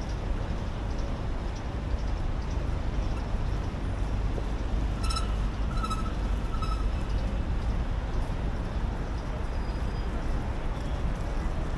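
Traffic hums steadily nearby.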